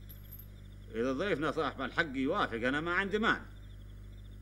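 An elderly man speaks firmly and close by.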